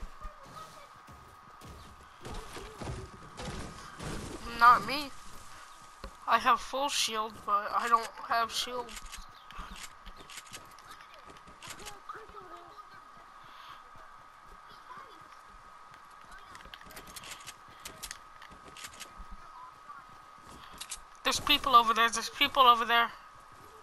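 Footsteps patter quickly on grass and dirt.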